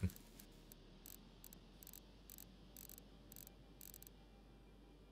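Soft electronic menu clicks tick in a quick, even series.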